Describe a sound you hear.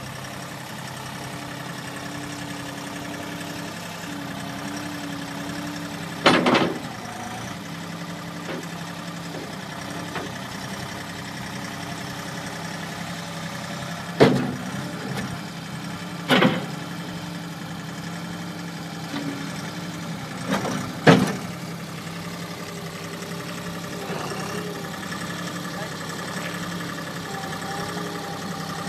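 A skid steer loader's diesel engine idles and revs steadily nearby.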